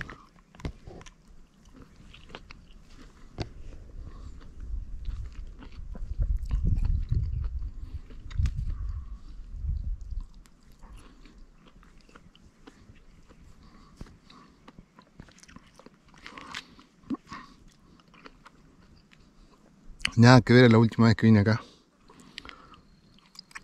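A man bites into juicy fruit.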